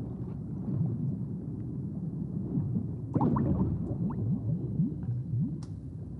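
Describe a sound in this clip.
A low underwater rumble drones steadily.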